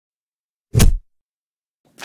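Hands thump down onto a wooden surface.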